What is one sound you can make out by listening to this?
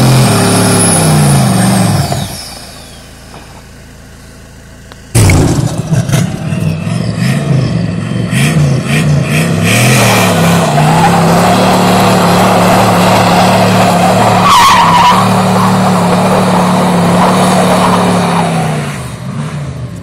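A car engine revs hard and roars nearby.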